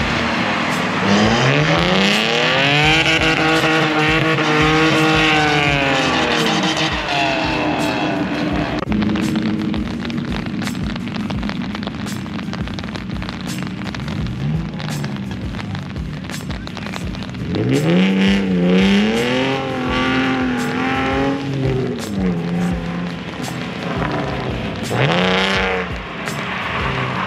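A car engine revs hard, rising and falling in pitch, at a distance outdoors.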